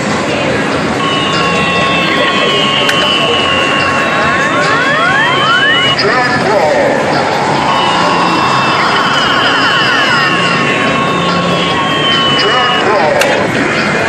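An arcade machine plays beeping electronic tones and jingles.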